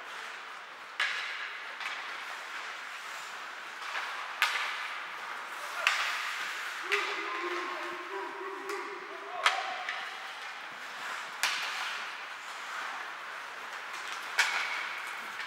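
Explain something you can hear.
Hockey sticks crack sharply against a puck now and then.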